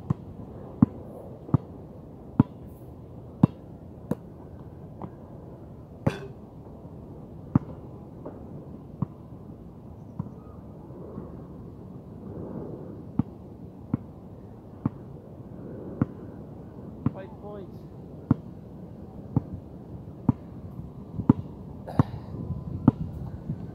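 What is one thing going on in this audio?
A basketball bounces on a hard outdoor court, with sharp thuds.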